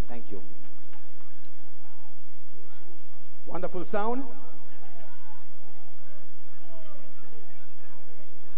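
A man speaks loudly into a microphone over loudspeakers in an echoing hall.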